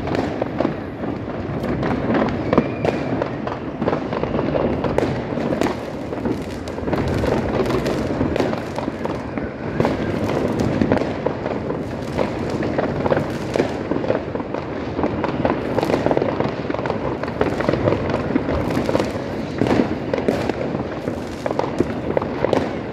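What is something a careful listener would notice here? Fireworks bang and crackle repeatedly all around.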